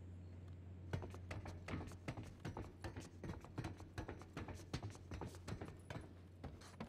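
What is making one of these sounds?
Hands and boots clank on a metal ladder rung by rung.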